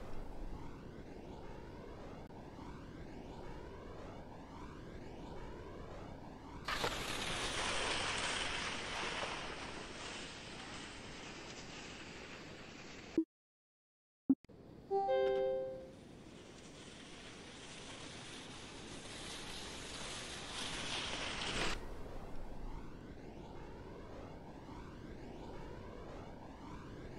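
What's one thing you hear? Wind rushes past a ski jumper in flight.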